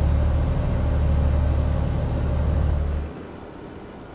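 A truck engine drones steadily at a low pitch, then suddenly drops away.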